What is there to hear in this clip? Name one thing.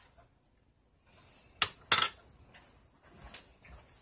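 A metal spoon clatters down on a countertop.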